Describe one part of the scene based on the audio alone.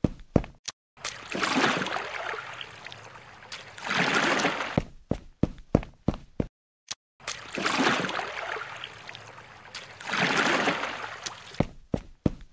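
A paddle swishes and splashes through water.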